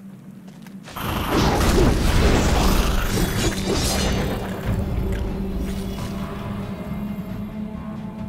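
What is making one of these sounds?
A large creature screeches and thrashes in a fight.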